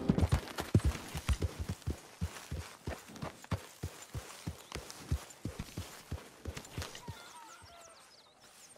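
A horse walks on grass.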